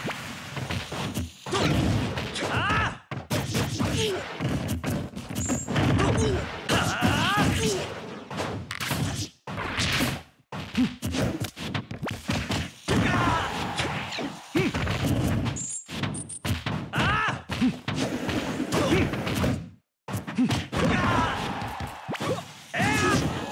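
Punches, kicks and sword blows land in quick, sharp bursts in a fighting game.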